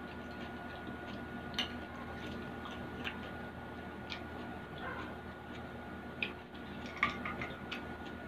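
A young woman chews food close to a microphone.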